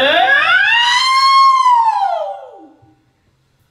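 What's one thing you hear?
A young man sings a long rising and falling note through a microphone and loudspeaker.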